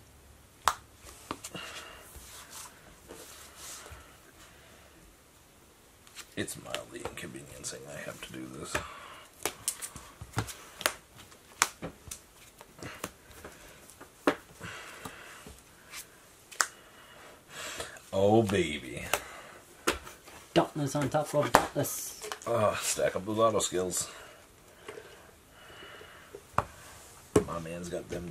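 Playing cards tap and slide on a soft mat.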